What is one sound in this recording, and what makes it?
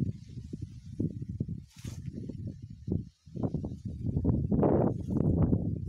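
Footsteps rustle through leafy plants on soft soil.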